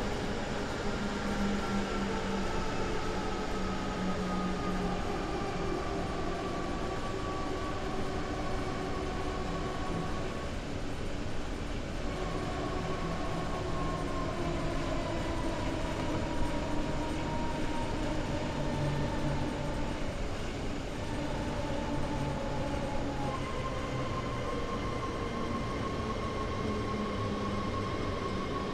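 An electric train's motor hums and whines, slowly falling in pitch as the train slows.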